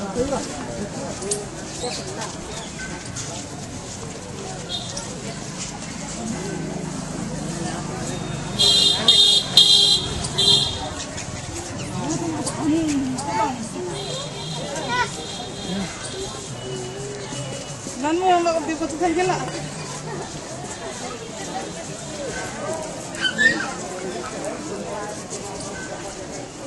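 Footsteps shuffle along a paved path.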